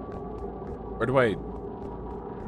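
A young man exclaims briefly into a close microphone.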